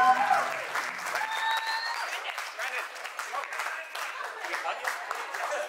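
A crowd of guests cheers and claps.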